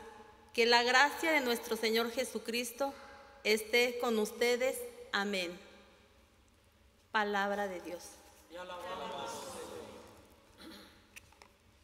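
A middle-aged woman reads out calmly through a microphone in a large echoing hall.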